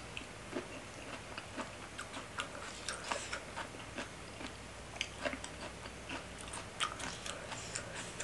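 Food crunches and squelches wetly in a close mouth.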